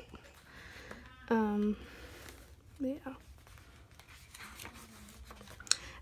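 Paper pages rustle softly as they are flipped.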